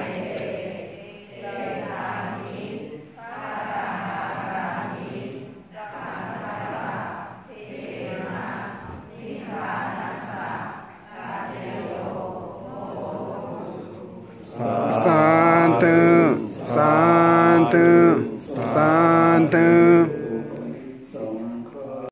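A large crowd of men and women chants together in unison, echoing in a hall.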